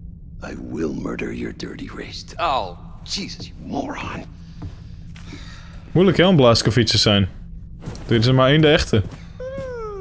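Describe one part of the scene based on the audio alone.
A man speaks loudly and theatrically.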